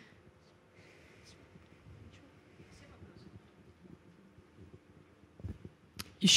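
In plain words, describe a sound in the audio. A young person speaks quietly into a microphone.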